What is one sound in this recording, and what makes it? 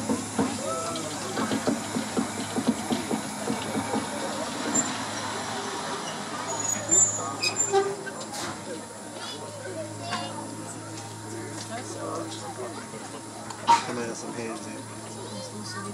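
An electric locomotive rolls slowly past with a steady hum.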